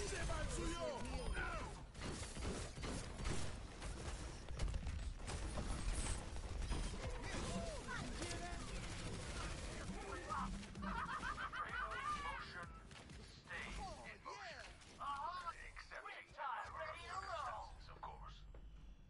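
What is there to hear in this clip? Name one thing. A grenade launcher fires in a video game battle.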